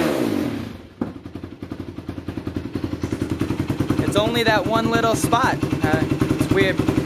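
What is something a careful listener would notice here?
A quad bike engine idles with a steady, rapid putter.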